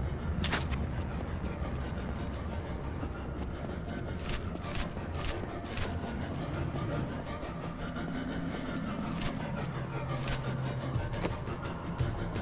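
Magic spells burst with short, sharp hissing whooshes.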